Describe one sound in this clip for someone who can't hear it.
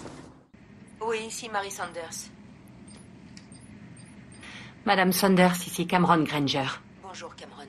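A woman speaks urgently into a phone nearby.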